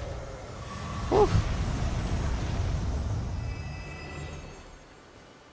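A burst of flame roars.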